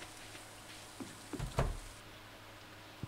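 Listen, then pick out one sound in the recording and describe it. A door opens and shuts with a thud.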